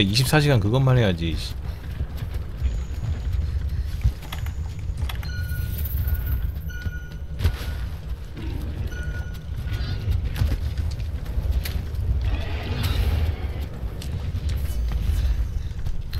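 A magic beam hums and crackles with a sparkling shimmer.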